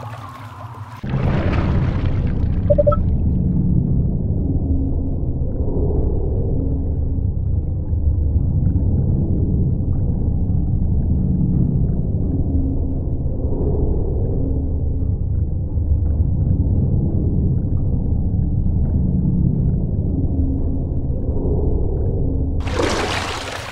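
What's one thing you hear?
Water rushes and bubbles steadily underwater.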